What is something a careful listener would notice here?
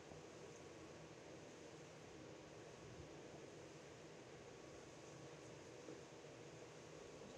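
Spectators murmur softly in a large echoing hall.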